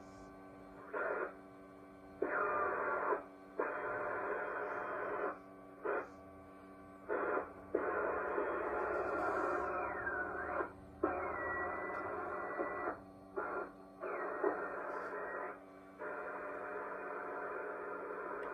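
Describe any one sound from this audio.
An old radio receiver hisses with bursts of static that cut in and out as it is tuned.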